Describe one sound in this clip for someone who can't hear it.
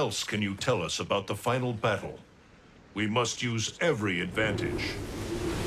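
A man speaks calmly and gravely, close by.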